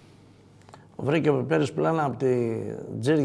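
An elderly man speaks calmly into a microphone close by.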